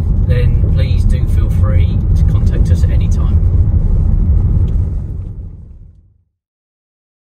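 A car engine hums and tyres rumble steadily on the road, heard from inside the car, then fade away.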